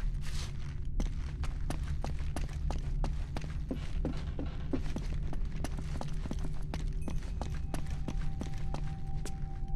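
Footsteps tap on a stone floor at a steady walking pace.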